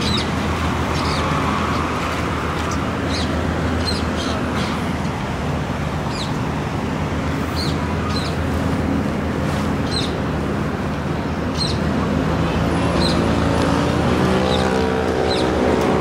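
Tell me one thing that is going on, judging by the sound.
A boat engine hums on the river.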